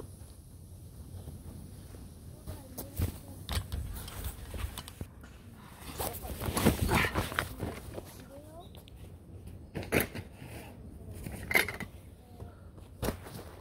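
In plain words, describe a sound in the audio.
Footsteps crunch on dry grass close by.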